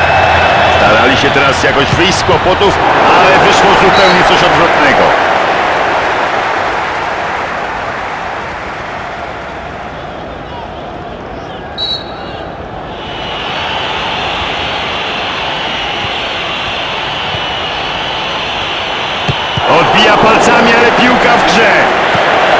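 A stadium crowd roars, swelling and fading.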